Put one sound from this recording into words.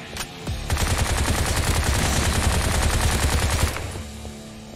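A game gun fires a loud roaring burst of flame.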